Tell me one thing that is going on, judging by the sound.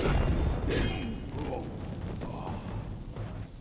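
Magic bolts crackle and whoosh.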